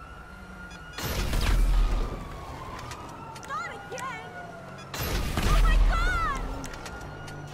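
A rocket explodes with a deep boom.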